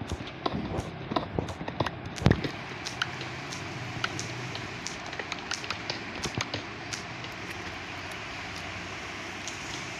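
A pickaxe chips and cracks at stone blocks.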